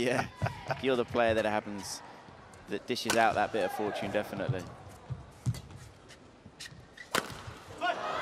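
A racket strikes a shuttlecock with sharp smacks.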